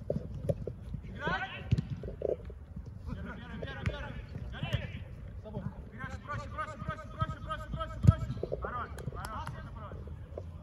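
Men shout and call out to each other across an open outdoor field.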